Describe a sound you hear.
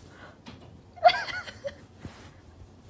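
A kitten meows loudly.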